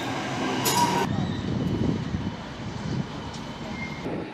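A tram rolls along its rails.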